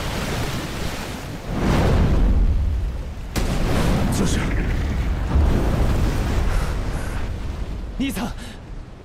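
Fire roars and rumbles.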